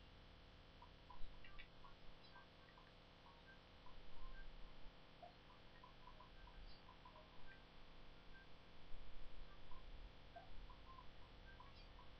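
Short electronic game tones blip through a small speaker.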